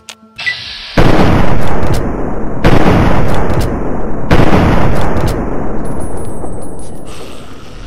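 A shotgun fires several loud, booming blasts.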